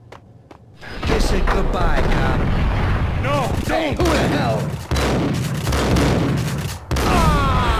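Shotgun blasts boom loudly in an echoing room.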